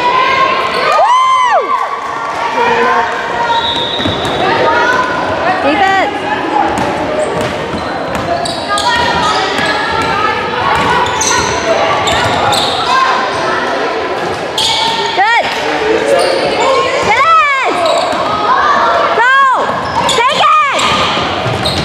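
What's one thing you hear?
Sneakers squeak sharply on a hardwood gym floor.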